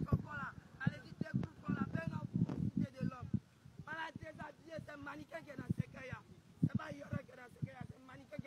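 A young man talks with animation, close to a phone microphone.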